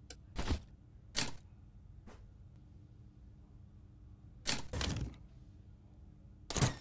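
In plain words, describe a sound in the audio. Short whooshing menu sounds play several times.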